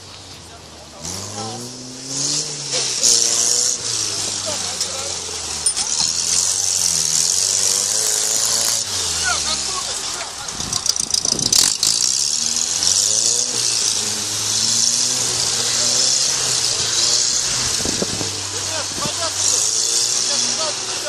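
An off-road truck's engine revs hard and roars, rising and falling.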